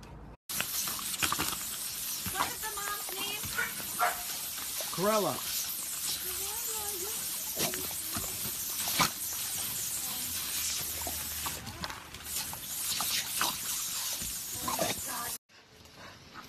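Water sprays with a steady hiss from a hose nozzle.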